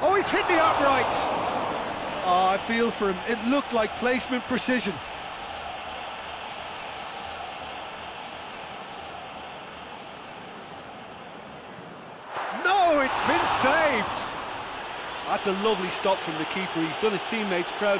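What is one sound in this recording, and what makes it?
A large stadium crowd roars and swells loudly.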